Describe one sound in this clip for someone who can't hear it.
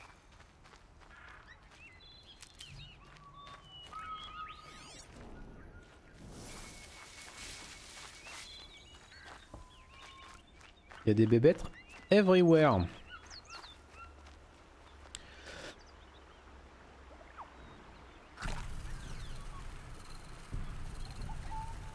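Footsteps rustle through tall grass and leaves.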